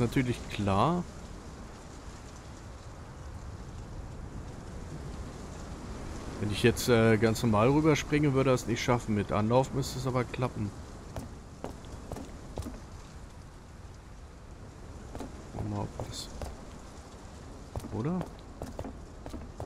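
A man talks close to a microphone in a lively, casual way.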